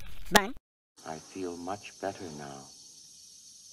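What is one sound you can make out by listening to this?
A man speaks calmly through a helmet radio.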